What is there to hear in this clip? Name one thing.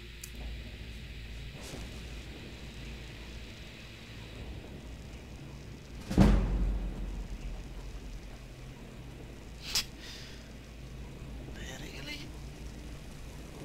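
Magic spells crackle and hum softly from both hands.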